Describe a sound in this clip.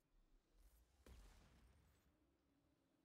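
An explosion bursts with a roaring blast.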